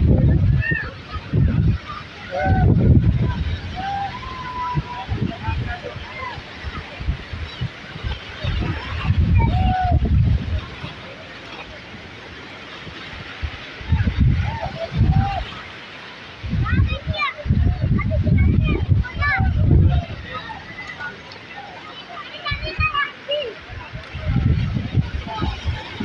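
Waves rush and crash over a rocky ledge, with water pouring and splashing.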